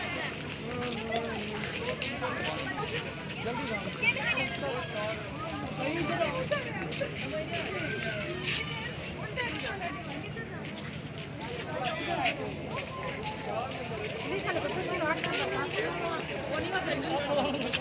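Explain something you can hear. Footsteps shuffle on concrete.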